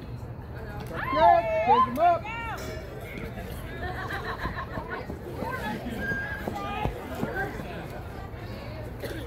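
Players shout and cheer loudly outdoors.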